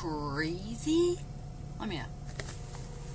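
A woman laughs and talks excitedly close by.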